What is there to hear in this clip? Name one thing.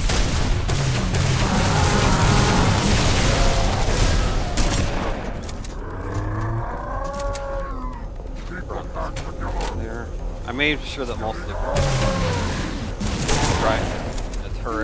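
Energy weapons fire in rapid bursts with loud crackling blasts.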